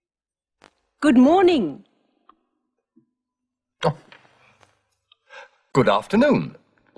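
A middle-aged man speaks clearly to a microphone.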